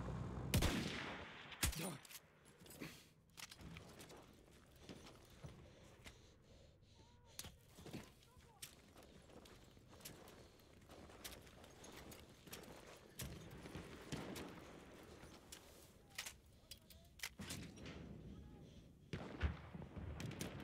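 Gunshots crack and echo in the distance.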